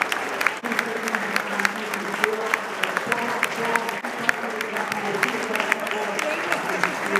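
A crowd of men chatters and calls out in an open stadium.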